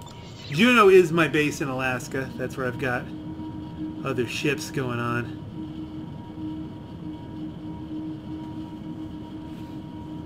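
A spaceship engine roars steadily.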